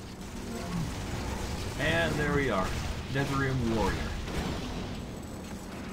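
Magic spells burst and crackle in quick bursts.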